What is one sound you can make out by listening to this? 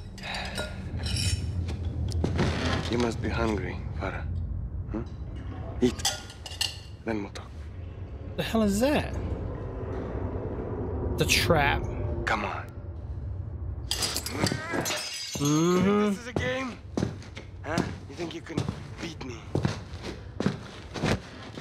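A man speaks calmly in a low, menacing voice.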